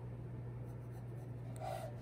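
A pencil scratches on paper.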